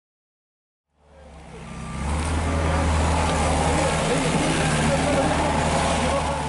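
A skid steer loader's diesel engine rumbles and roars nearby.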